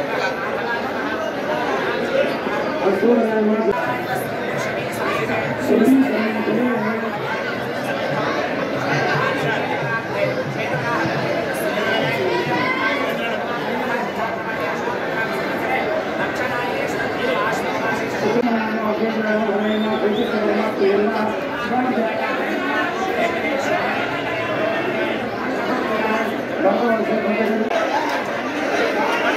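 A crowd of men chatters in the background.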